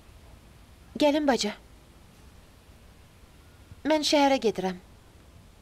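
A young woman calls out loudly nearby.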